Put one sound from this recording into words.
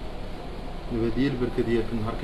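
A young man speaks close into a microphone.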